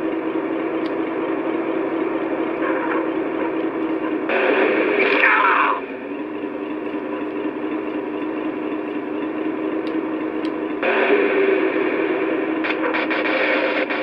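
A car engine hums and revs through a small tinny loudspeaker.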